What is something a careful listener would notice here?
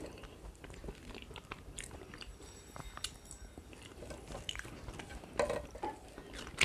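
A young woman chews and smacks her lips wetly, close to a microphone.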